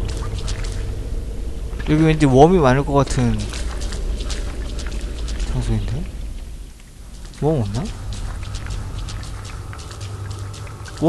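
Footsteps patter softly on hard ground.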